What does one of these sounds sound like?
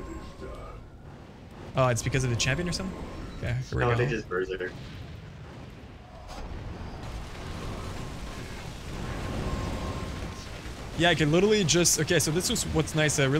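Fiery blasts burst and roar in a battle.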